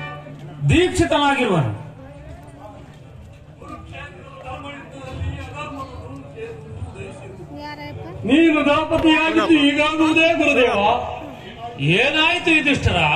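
A man on stage sings loudly through a loudspeaker in long, sweeping notes.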